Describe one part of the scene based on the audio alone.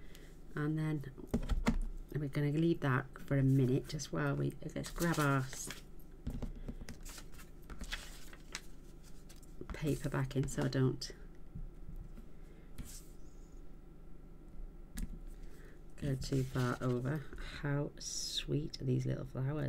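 Paper slides and rustles on a table.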